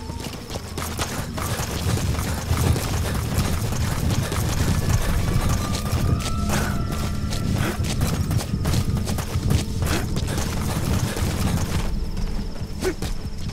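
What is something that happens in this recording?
Footsteps run quickly over dry ground and grass.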